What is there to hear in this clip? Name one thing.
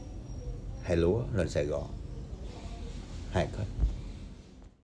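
A young man talks closely and calmly.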